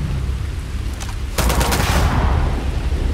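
A rifle fires several shots in quick succession.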